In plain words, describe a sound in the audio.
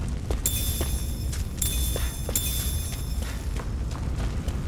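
Bright magical chimes twinkle and shimmer.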